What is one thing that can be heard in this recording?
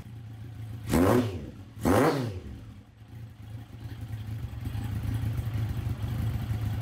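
A motorcycle engine idles with a low, throbbing rumble from its exhaust.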